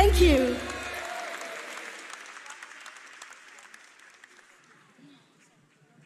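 A large audience applauds, then the clapping fades away.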